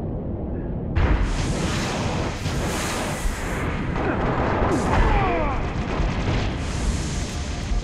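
Gunfire bursts rapidly at close range.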